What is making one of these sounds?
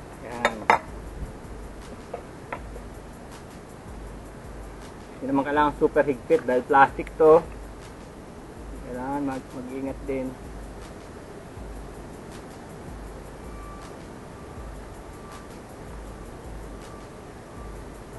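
Plastic pipe fittings click and clack together.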